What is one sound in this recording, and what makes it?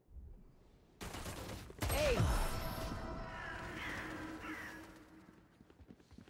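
A triumphant game sound effect swells and rings out.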